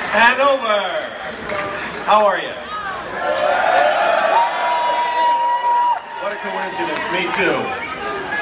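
A crowd sings and chants together.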